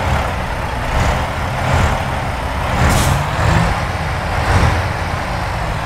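A truck engine rumbles low and steady as the truck rolls slowly forward.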